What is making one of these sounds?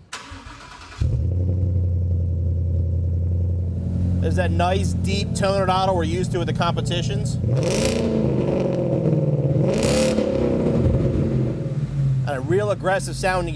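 A car engine starts up and idles with a deep, steady rumble.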